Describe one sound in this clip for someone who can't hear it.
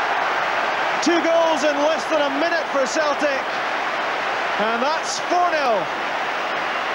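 A crowd of fans sings and chants together.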